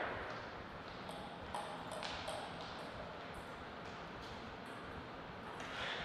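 A ping-pong ball bounces lightly on a table between points.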